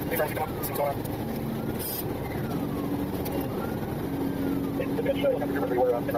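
Tyres hum steadily on a highway as a car drives fast.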